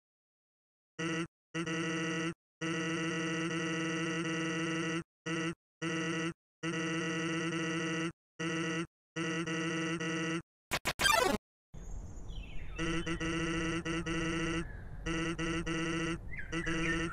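Rapid electronic blips chatter in bursts as game dialogue text is typed out.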